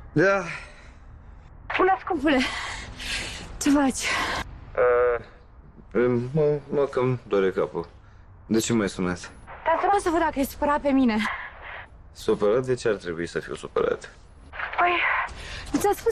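A man talks on a phone in a strained, weary voice.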